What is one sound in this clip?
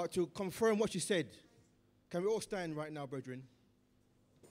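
An elderly man speaks with animation into a microphone in a reverberant hall.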